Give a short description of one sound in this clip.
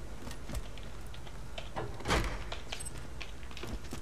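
A metal safe door clanks open.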